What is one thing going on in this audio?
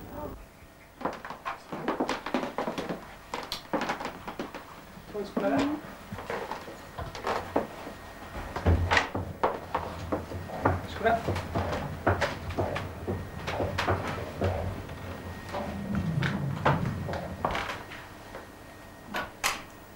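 Footsteps tread across a hard floor.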